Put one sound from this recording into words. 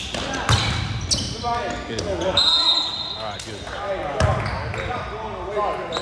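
Sneakers squeak sharply on a hard floor in a large echoing gym.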